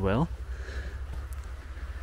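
Footsteps crunch on dry needles and twigs.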